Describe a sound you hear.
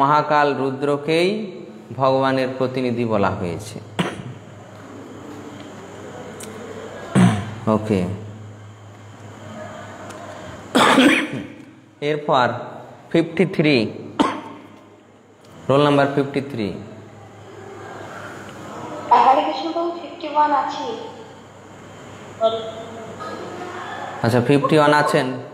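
A man chants melodically, close to a microphone.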